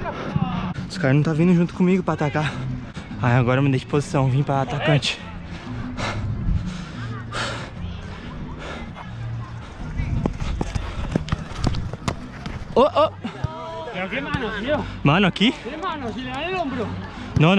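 Young men shout and call out nearby, outdoors.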